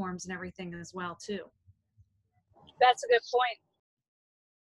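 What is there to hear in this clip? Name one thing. A woman speaks casually over an online call.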